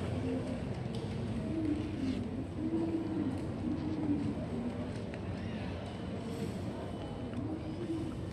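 Wooden chopsticks tap and scrape against a plastic box.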